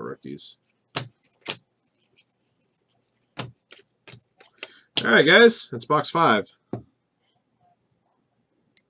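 Trading cards rustle as hands flip through them.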